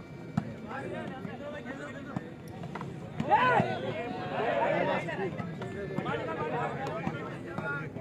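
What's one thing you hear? A ball is struck by hands with sharp slaps.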